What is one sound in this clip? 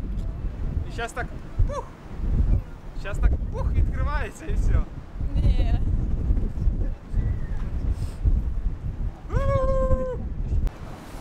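A young woman exclaims and calls out excitedly nearby.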